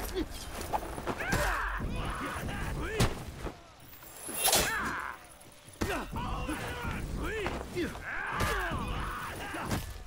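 Metal blades clash and ring in a fight.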